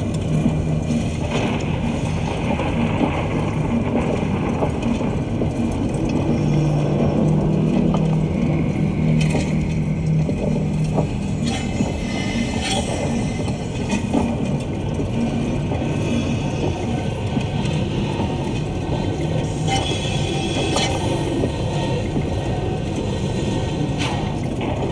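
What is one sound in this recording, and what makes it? A low engine hums steadily underwater.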